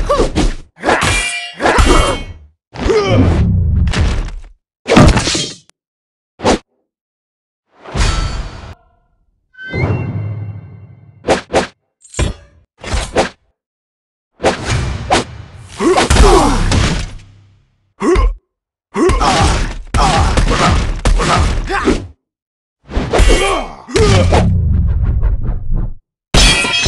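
Blows and sword strikes thud and clang in a fast fight.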